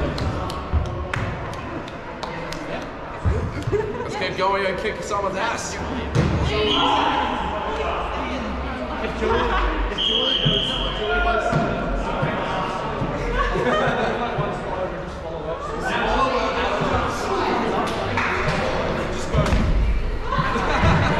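Young people talk and shout with animation in a large echoing hall.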